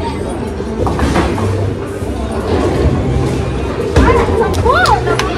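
Pins crash and clatter.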